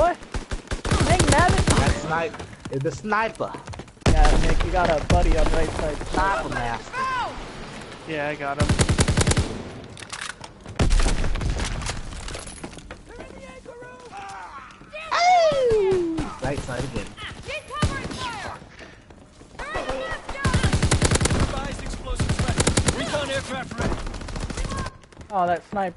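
Rapid bursts of automatic gunfire ring out.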